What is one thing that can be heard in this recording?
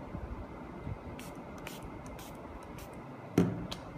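A spray bottle hisses in short bursts.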